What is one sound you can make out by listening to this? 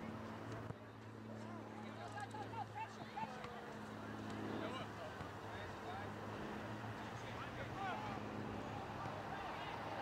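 Young players shout to each other across an open field.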